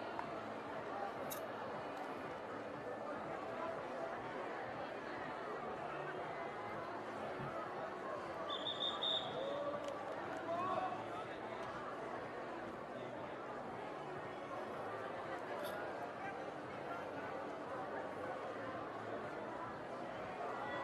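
A crowd cheers steadily.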